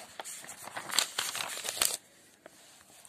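Paper rustles as a notebook page is turned.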